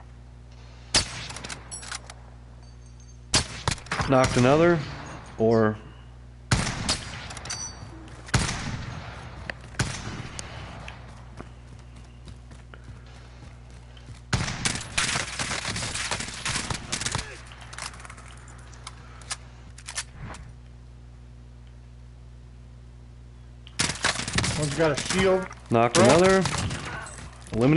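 Rapid gunfire cracks in sharp bursts.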